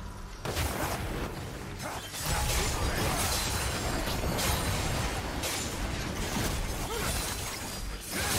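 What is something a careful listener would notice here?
Game spells burst and crackle during a fight in a video game.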